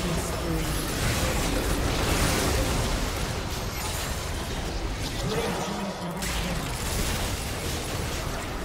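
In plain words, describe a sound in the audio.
Magic blasts and hits crackle and whoosh in a hectic battle.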